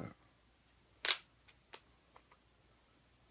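Plastic parts click as they are handled.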